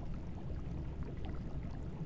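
A torch flame crackles softly.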